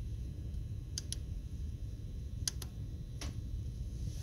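Small plastic buttons click sharply a few times.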